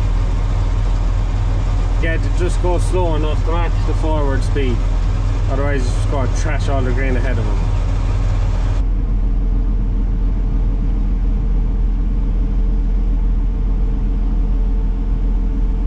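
A heavy engine drones steadily, heard from inside a cab.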